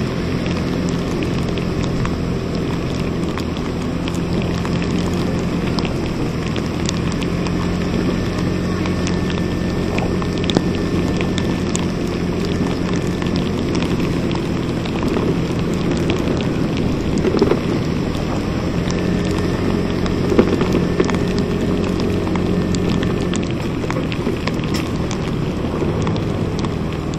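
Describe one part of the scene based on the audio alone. A scooter engine hums steadily while riding.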